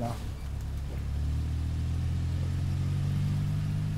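A car engine hums steadily and grows louder as the car pulls away.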